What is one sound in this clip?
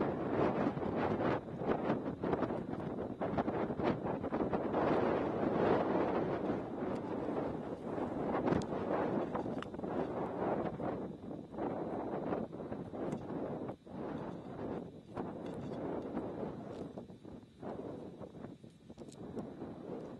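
Wind gusts loudly across an open outdoor space, buffeting the microphone.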